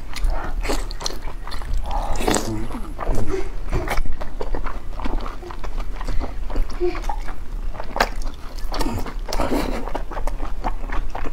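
A young woman slurps noodles loudly, close to the microphone.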